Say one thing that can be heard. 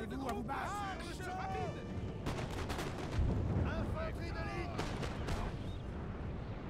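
Musket volleys crackle in sharp bursts.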